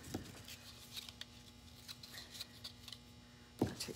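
Ribbon rustles as it is unrolled.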